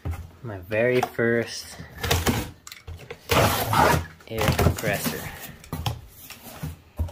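Cardboard rips and tears loudly.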